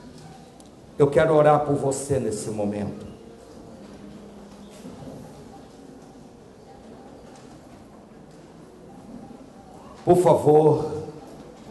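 A middle-aged man speaks with emphasis into a microphone, heard through loudspeakers in an echoing hall, with long pauses between phrases.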